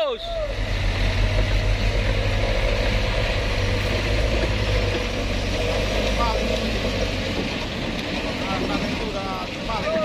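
Tyres churn through thick mud.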